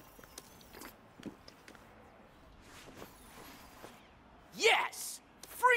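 An arcade game plays electronic beeps and blips.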